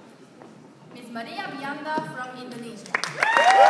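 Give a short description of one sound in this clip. A woman announces over a loudspeaker in a hall.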